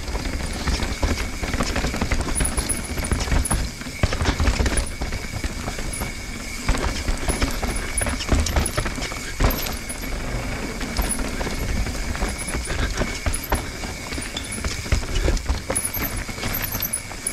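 A bicycle rattles and clatters over roots and rocks.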